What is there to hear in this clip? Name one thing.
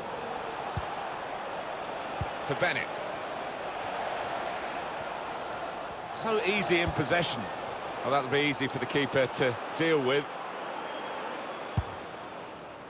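A football is kicked with short dull thumps.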